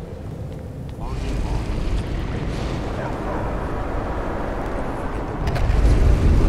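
Magical flames roar and crackle.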